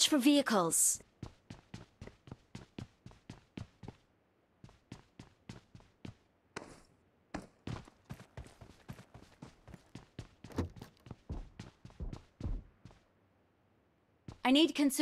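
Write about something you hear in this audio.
Footsteps run quickly across a hard floor.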